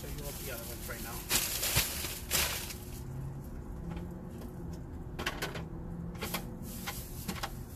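Objects thump and rattle as they are loaded into a car's boot.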